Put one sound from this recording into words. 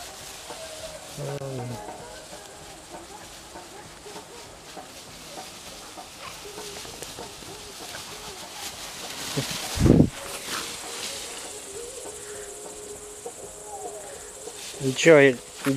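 Dogs rustle through tall grass as they run.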